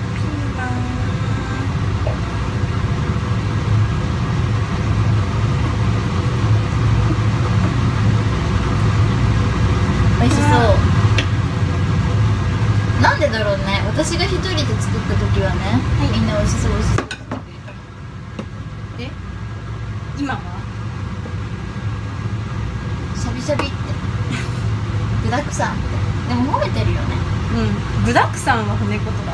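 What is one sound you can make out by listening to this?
Young women talk casually close by.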